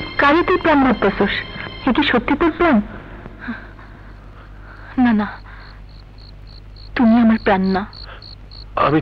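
A woman speaks emotionally, close by.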